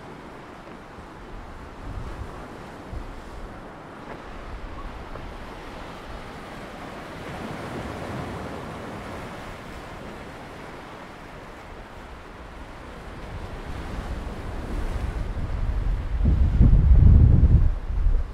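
Wind blows and buffets loudly across the microphone.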